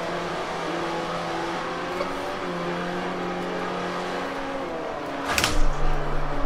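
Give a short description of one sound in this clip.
A racing car engine hums steadily, its pitch shifting as it changes gear.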